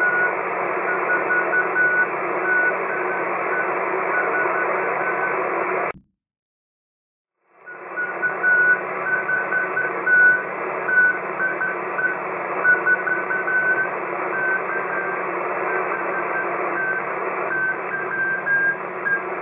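Radio static hisses steadily from a receiver.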